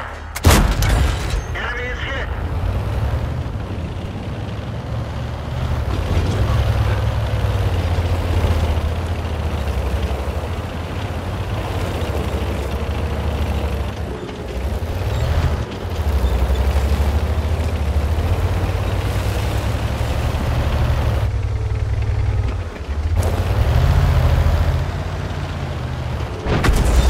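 A tank engine rumbles steadily as the tank drives over rough ground.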